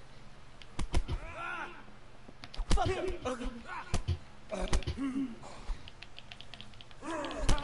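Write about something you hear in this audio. Men grunt and shout while fighting.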